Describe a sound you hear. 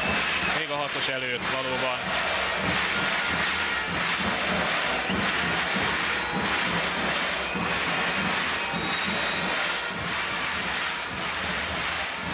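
A crowd of spectators claps.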